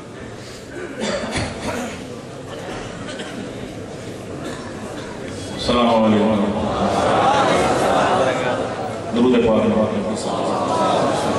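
A middle-aged man speaks with passion through a microphone and loudspeakers in an echoing hall.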